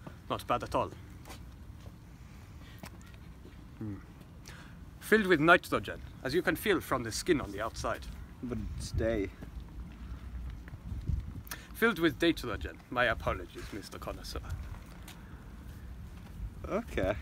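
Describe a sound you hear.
A young man speaks calmly and close by, with pauses.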